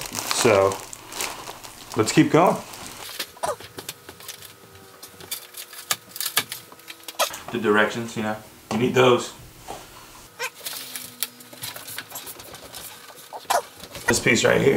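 Foam packing sheets rustle and scrape as a box is unpacked.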